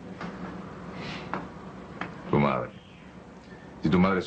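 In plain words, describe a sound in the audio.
A man speaks softly, close by.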